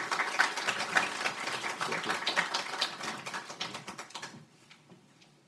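An audience applauds in a large room and the clapping fades away.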